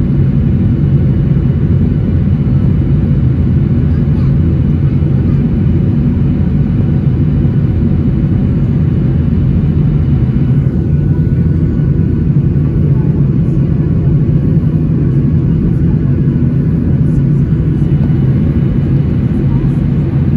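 A jet engine roars steadily and deeply, heard from inside an airplane cabin.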